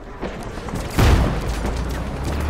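A tank cannon fires with a loud blast.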